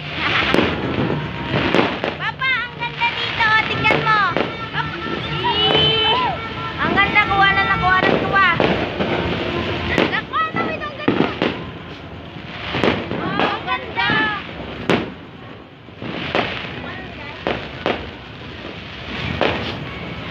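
Fireworks bang and pop repeatedly, echoing outdoors.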